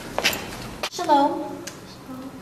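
A young woman says hello brightly up close.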